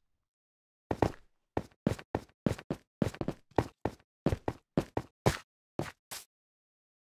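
Footsteps thud on stone at a steady pace.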